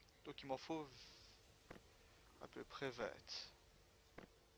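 A man speaks briefly into a microphone, close and casual.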